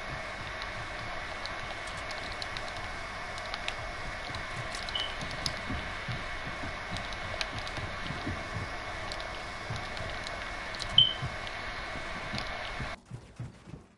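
Building pieces snap into place with quick clacks in a video game.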